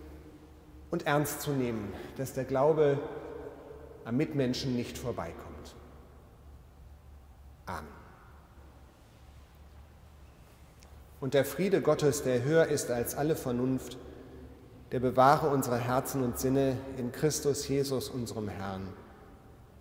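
A middle-aged man speaks calmly through a microphone in a large echoing room.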